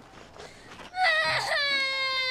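A young girl sobs and wails.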